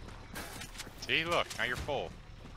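A man speaks with animation, close to a headset microphone.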